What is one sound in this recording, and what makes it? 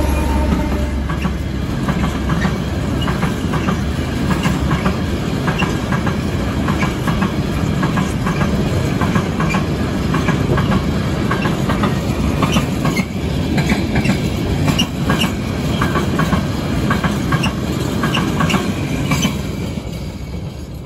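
Freight wagon wheels clatter rhythmically over rail joints.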